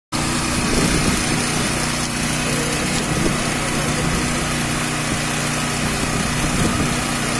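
An engine rumbles steadily nearby.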